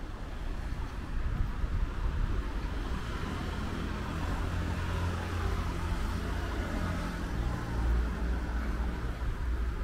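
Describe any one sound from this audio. Cars drive past on a nearby street.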